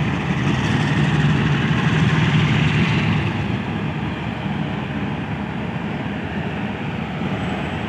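A train's diesel engine rumbles steadily nearby.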